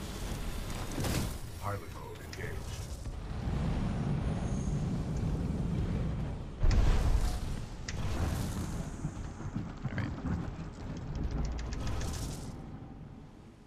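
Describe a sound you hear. Game explosions boom loudly.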